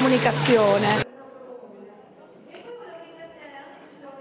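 A crowd murmurs softly.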